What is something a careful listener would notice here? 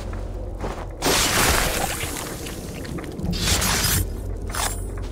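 A blade stabs into flesh with a wet thud.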